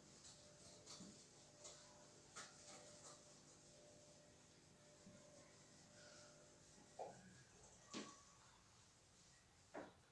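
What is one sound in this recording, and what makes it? A board eraser rubs across a whiteboard.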